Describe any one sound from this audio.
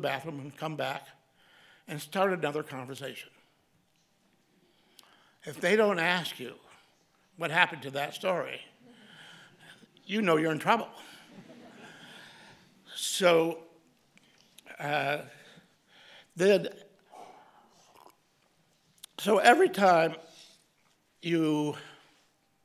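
An elderly man speaks slowly and deliberately into a microphone, with pauses.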